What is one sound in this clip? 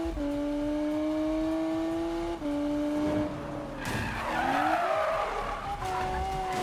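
A sports car engine roars at high revs, shifting gears.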